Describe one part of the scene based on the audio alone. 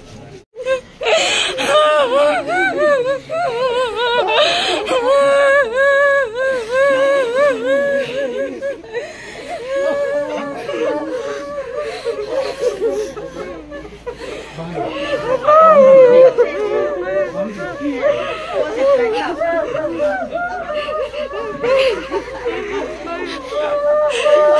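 A woman wails and sobs loudly up close.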